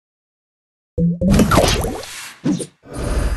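Game sound effects whoosh and chime as tiles burst.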